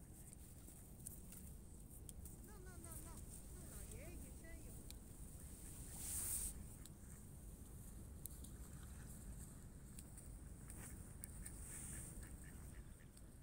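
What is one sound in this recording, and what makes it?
A swan's webbed feet pad softly on sand.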